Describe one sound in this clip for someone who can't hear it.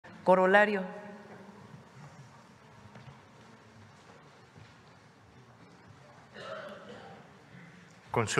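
A man speaks through a microphone in a large hall, with pauses between his words.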